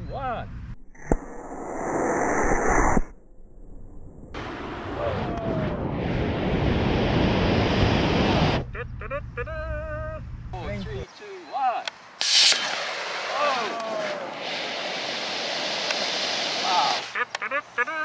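A model rocket motor roars loudly as it blasts off, outdoors.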